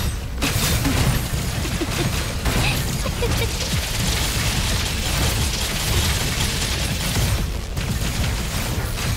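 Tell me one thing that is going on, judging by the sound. Energetic blade slashes and magic blasts crackle rapidly.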